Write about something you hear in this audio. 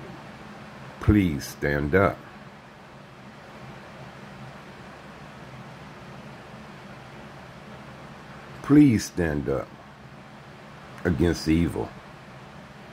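An elderly man speaks slowly in short bursts, close to the microphone.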